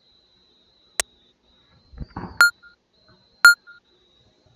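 Short electronic beeps count down in a steady rhythm.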